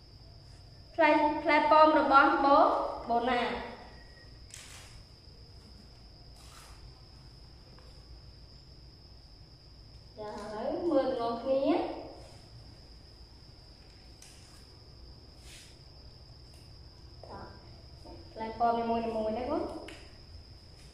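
A young woman speaks clearly and with animation, close by.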